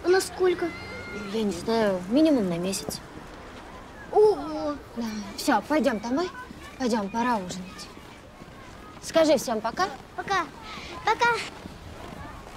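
A woman speaks softly and warmly, close by.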